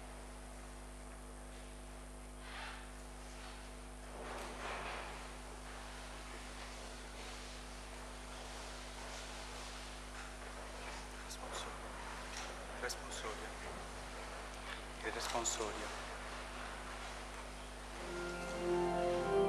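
People shift and rustle quietly in a large echoing hall.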